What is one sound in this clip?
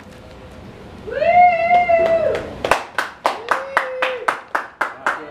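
A gliding electronic tone plays through loudspeakers.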